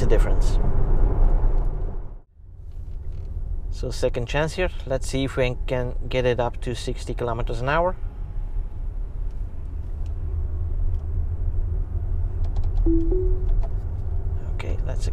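A car's tyres roll over the road with a low steady rumble.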